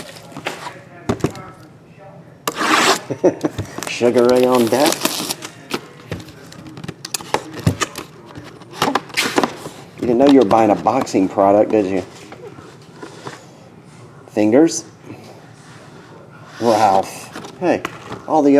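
A cardboard box rustles and slides as hands handle it.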